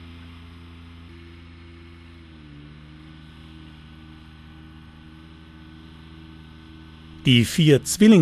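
A machine engine hums steadily nearby.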